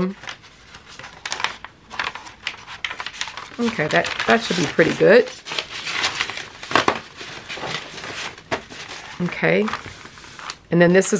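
Sheets of thick paper rustle and crinkle as they are handled.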